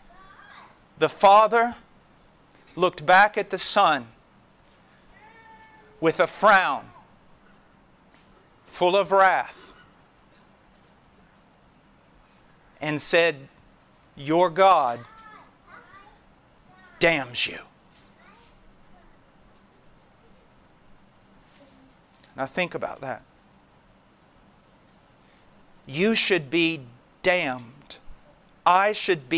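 A man speaks with emphasis into a microphone, in short bursts with long pauses.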